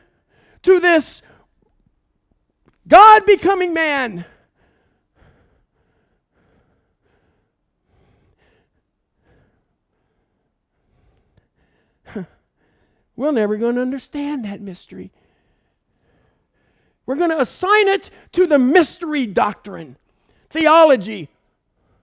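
A man speaks with animation through a clip-on microphone, in short bursts with pauses.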